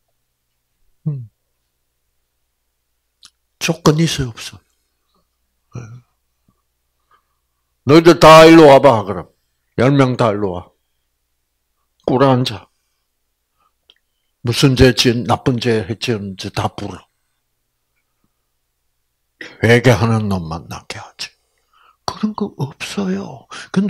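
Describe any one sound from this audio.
An elderly man speaks with animation into a microphone, in bursts with pauses.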